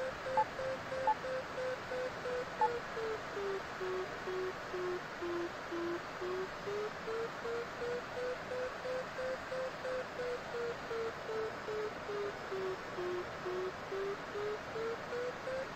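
An electronic flight instrument beeps in quick, steady pulses, its pitch slowly sinking and rising again.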